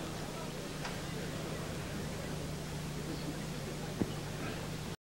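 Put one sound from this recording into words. A crowd murmurs softly in a large echoing arena.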